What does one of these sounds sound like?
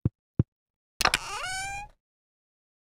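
A menu opens with a quick rising chime.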